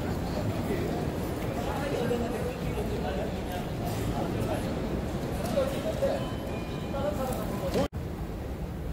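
A crowd murmurs and footsteps echo in a large hall.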